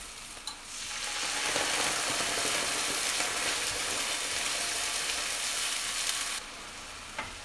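Sauce sizzles loudly in a hot pan.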